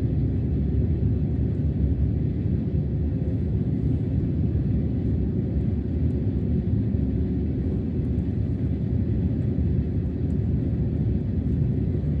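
A train rumbles steadily as it travels.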